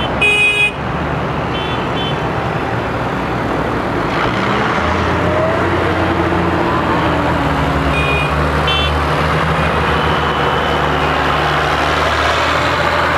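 Heavy tractor engines rumble steadily as they drive past close by, one after another.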